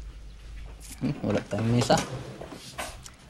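A woman speaks nearby in a calm voice.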